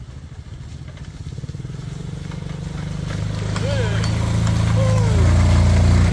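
Motorbike tyres splash through shallow water.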